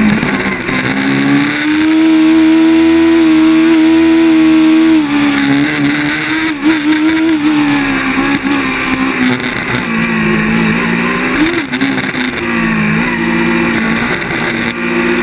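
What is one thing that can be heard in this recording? A race car engine roars up close, its pitch rising and falling with the throttle.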